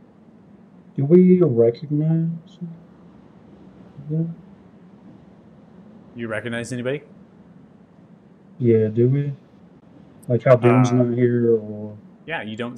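A man speaks in short bursts over an online call.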